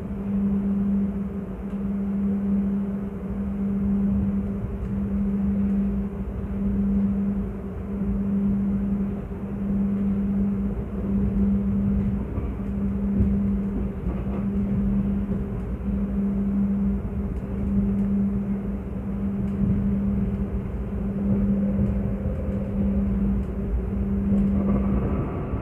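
A train rumbles steadily, heard from inside a carriage.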